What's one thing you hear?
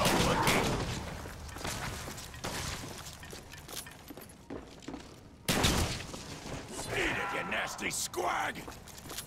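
Gunshots and explosions boom in a video game.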